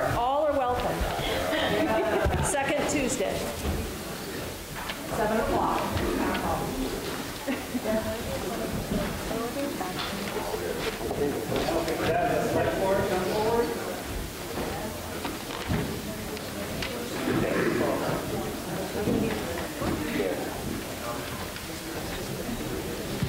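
A man speaks to a crowd through a microphone in an echoing hall.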